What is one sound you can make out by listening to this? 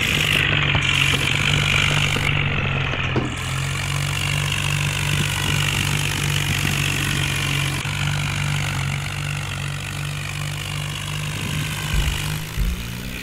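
A tractor engine roars steadily under heavy load.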